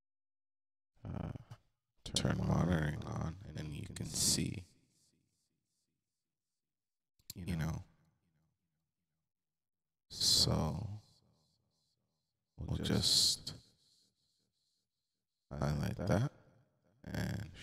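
A man speaks calmly into a microphone in short bursts with pauses.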